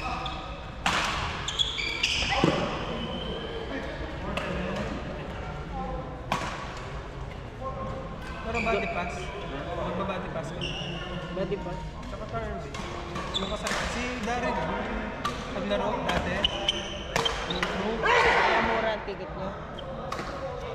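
Rackets strike shuttlecocks with sharp pops in a large echoing hall.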